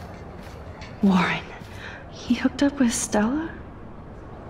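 A young woman asks a question in surprise.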